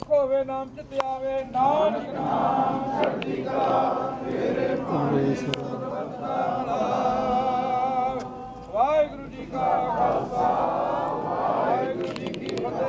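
A crowd of men and women chants loudly together outdoors.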